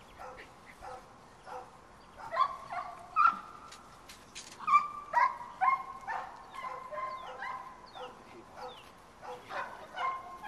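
Puppies yelp and bark excitedly close by.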